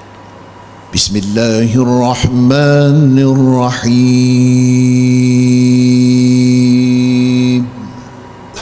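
A man chants in a loud, drawn-out voice through a microphone.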